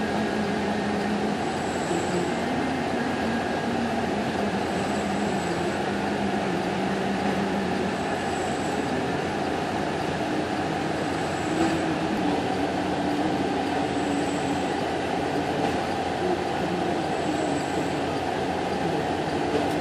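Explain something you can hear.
Heavy transporter engines drone steadily nearby.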